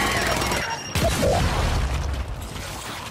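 A heavy explosion booms with a deep rumble.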